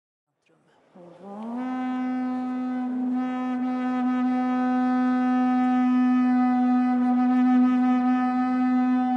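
A performer sounds a long held note that slides up and then holds steady in a large echoing hall.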